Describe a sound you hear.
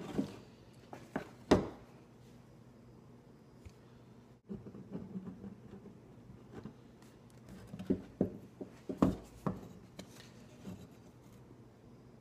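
Wooden pieces knock together on a bench.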